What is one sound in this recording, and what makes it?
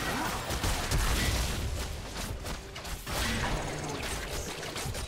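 Magic spells crackle and blast in a busy battle.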